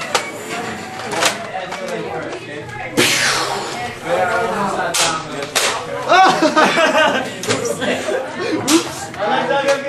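A toy blaster clicks and snaps as it is cocked and fired.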